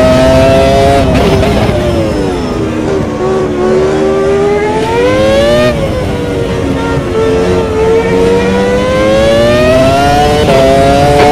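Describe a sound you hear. A racing car engine drops in pitch as the car brakes and shifts down, then revs back up.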